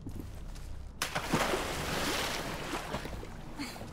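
Water splashes as something drops into it.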